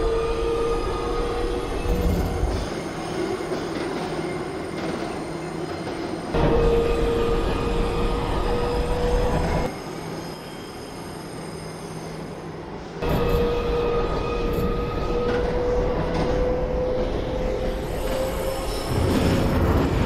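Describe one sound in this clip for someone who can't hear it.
An electric motor whines steadily, slowly rising in pitch.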